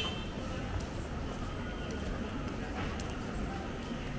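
Sandals slap on pavement as a person walks past close by.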